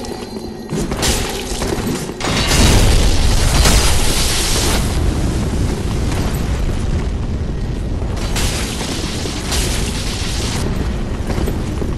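Blades swing and swoosh in a fight.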